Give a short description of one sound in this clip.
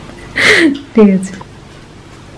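A girl speaks close by with animation.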